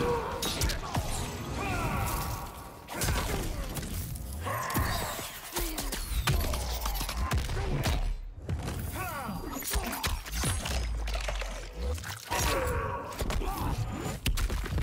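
Heavy punches and kicks land with loud thuds.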